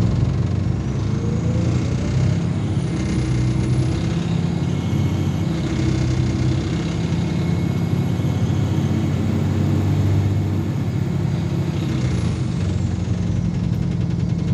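An electric motor whines, rising in pitch as the bus pulls away and falling as it slows.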